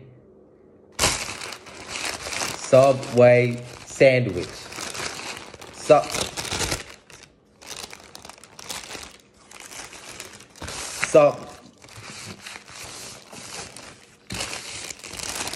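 Paper wrapping crinkles and rustles.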